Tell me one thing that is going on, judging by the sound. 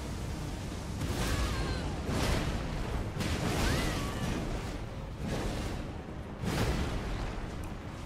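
Heavy sword blows land with crashing hits.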